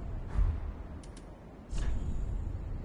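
Soft menu clicks and chimes sound as options are selected.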